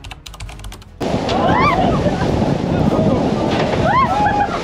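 A group of young people cheer and shout with excitement.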